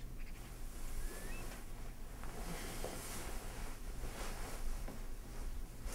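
Bedding rustles as a man turns over in bed.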